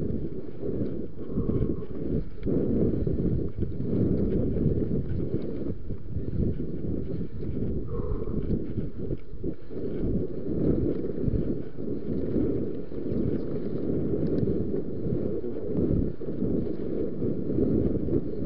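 Bicycle tyres roll and bump over a dirt trail.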